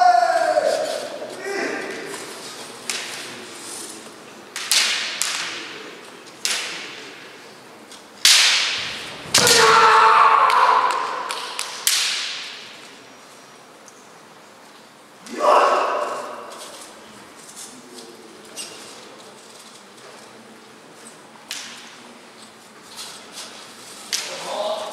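Fencers let out loud, piercing shouts that echo in a large hall.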